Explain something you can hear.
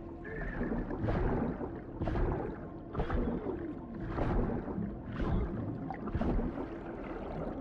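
A large animal snarls and growls.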